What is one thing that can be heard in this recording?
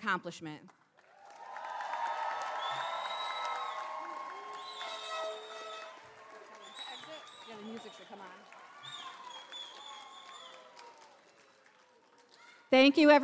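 A large crowd cheers and shouts in a large hall.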